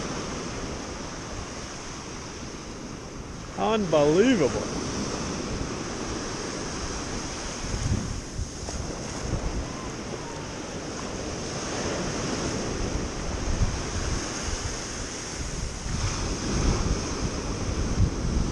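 Waves wash and break on the shore.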